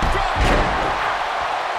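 A heavy thud lands on a wrestling ring.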